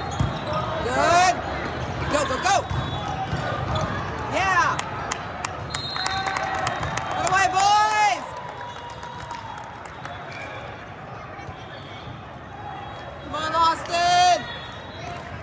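Young women on a team shout and cheer loudly.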